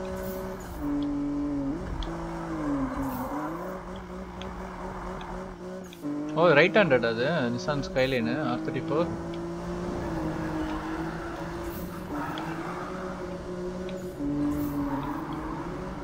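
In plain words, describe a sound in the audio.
A car engine roars, its pitch rising and falling as the gears change.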